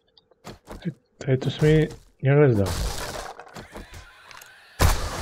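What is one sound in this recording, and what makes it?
An axe strikes wood with heavy thuds.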